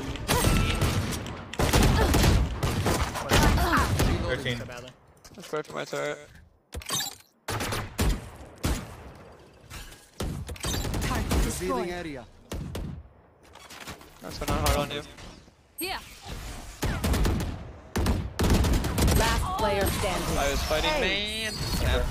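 Gunshots crack in quick bursts from a video game.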